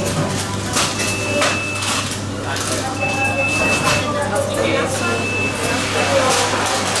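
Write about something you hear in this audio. A till beeps in short, repeated bursts.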